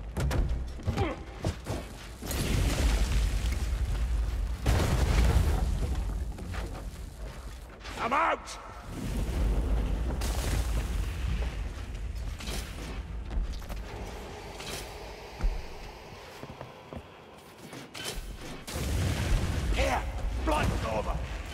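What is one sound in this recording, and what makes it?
Heavy footsteps thud along wooden boards.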